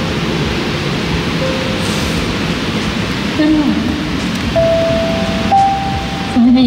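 A piano plays chords.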